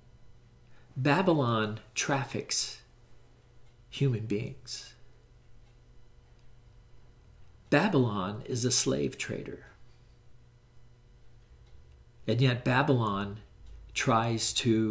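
An elderly man speaks calmly into a nearby microphone, pausing between phrases.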